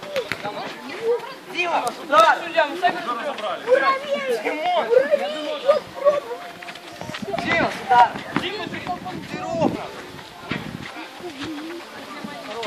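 Boys shout and call out to each other outdoors during a football game.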